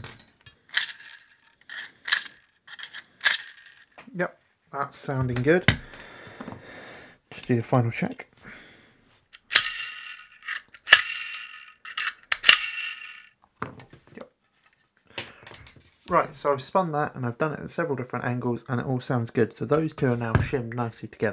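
Metal parts click and clack as they are handled.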